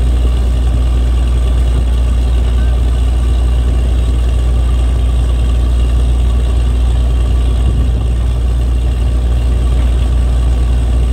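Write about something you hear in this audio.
A drilling rig's diesel engine rumbles loudly and steadily.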